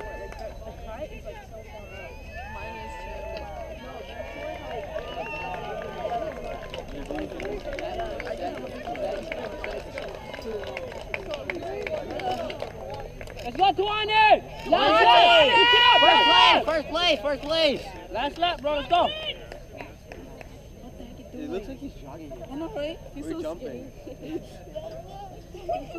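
A crowd of spectators chatters far off outdoors.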